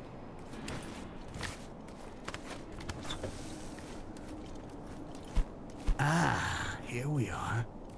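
Soft footsteps creep over a stone floor.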